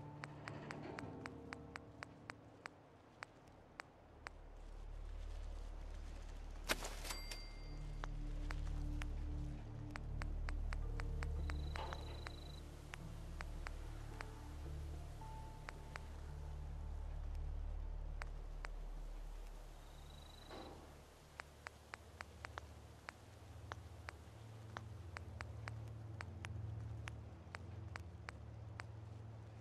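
Short soft clicks tick again and again as items are scrolled through.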